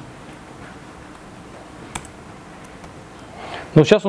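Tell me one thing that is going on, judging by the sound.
A man types on a laptop keyboard.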